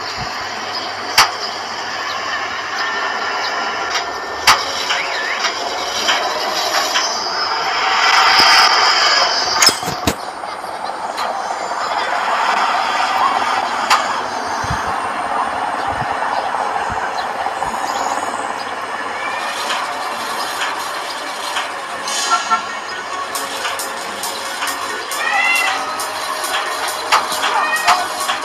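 A heavy engine hums steadily.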